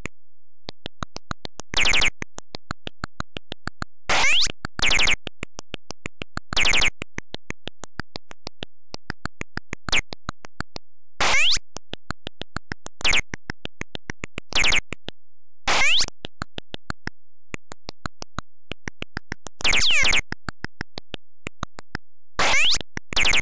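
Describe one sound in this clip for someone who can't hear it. Rapid electronic clicks tick steadily as a video game character walks.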